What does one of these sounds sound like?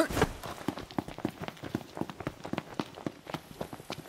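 Footsteps run on a paved road.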